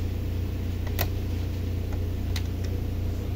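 A plastic trim part clicks sharply as a hand handles it.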